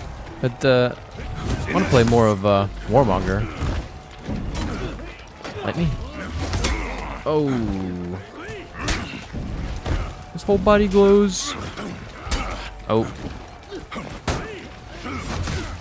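Metal weapons clash and clang in a fight.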